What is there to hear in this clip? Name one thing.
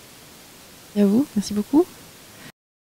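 A woman speaks briefly at a distance.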